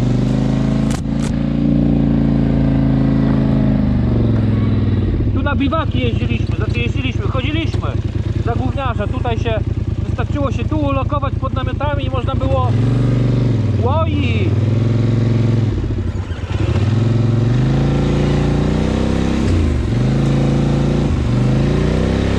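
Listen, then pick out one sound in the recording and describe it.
An all-terrain vehicle engine rumbles and revs up and down.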